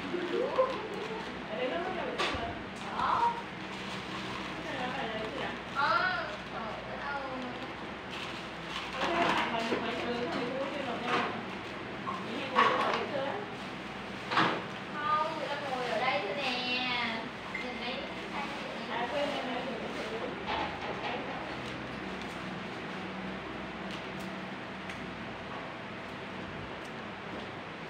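Hands fold and twist crepe paper, which rustles and crinkles.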